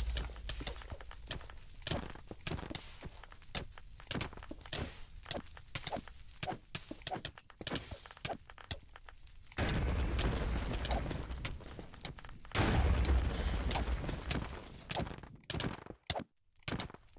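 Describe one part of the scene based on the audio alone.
Game sword hits land on a player with quick sharp thuds.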